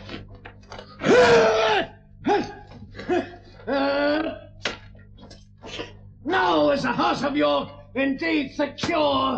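A man shouts loudly and angrily.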